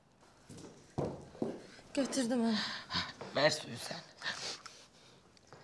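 A young woman speaks emotionally, close by.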